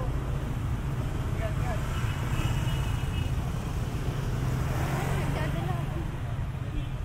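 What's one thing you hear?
Motor scooters pass close by with buzzing engines.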